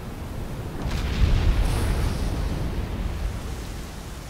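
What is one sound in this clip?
Thunder rumbles deeply and rolls away.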